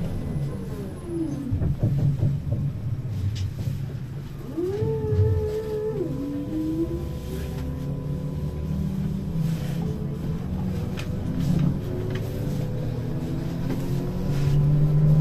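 A bus engine hums and rumbles steadily while driving.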